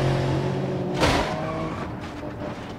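Cars crash together with a loud bang and crunching metal.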